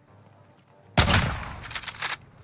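A rifle fires a single loud shot that echoes briefly.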